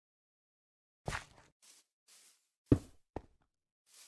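A block clunks into place with a short knock.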